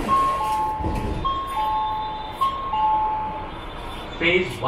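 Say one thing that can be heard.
A two-tone electronic chime beeps repeatedly.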